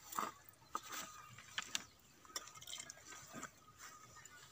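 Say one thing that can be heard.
Metal bowls clink softly.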